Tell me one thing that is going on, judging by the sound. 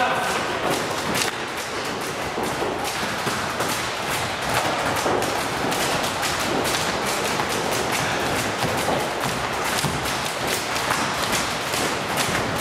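A volleyball thumps off players' hands in an echoing hall.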